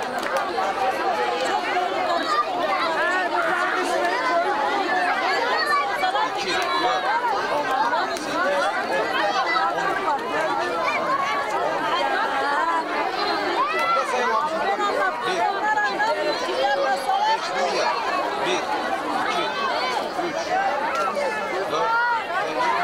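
A large crowd of women and children chatters loudly all around, outdoors.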